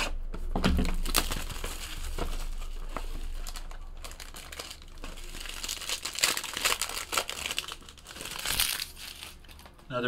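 Plastic wrapping crinkles and rustles as hands tear it open.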